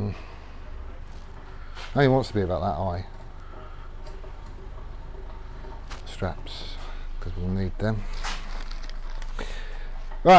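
Metal clinks lightly as a man handles a frame.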